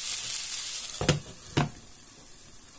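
A glass lid clinks against a pan.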